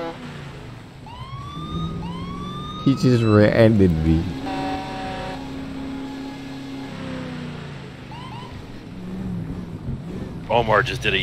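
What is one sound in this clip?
A car engine revs and roars.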